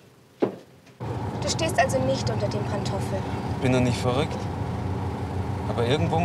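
A car engine hums steadily inside a moving car.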